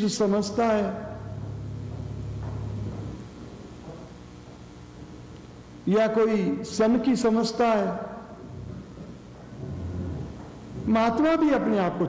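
An elderly man speaks calmly into a microphone, in pauses.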